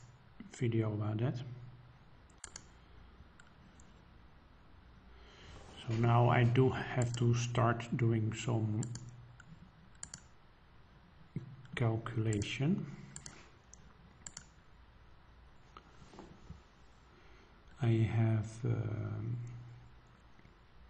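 A man speaks calmly into a close microphone, in short bursts.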